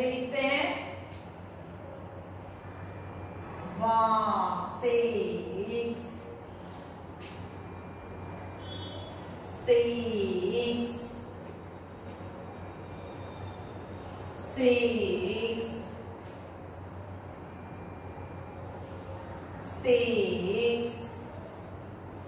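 A young woman speaks in short, clear phrases nearby, with pauses between them.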